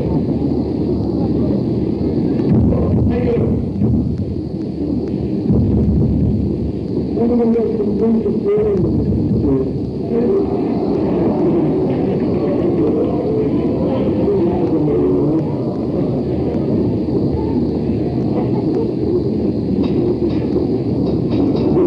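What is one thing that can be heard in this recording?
A rock band plays electric guitars and drums live.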